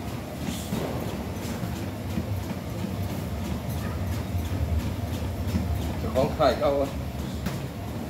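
Footsteps thud on a treadmill belt.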